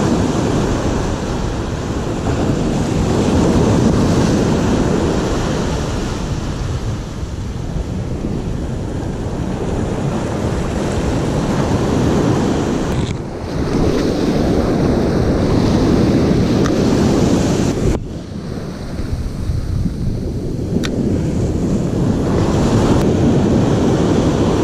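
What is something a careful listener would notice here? Waves crash and roll onto the shore nearby.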